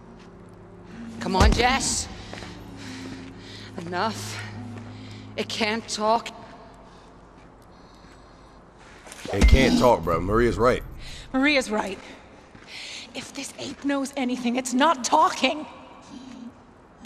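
A woman speaks tensely, up close.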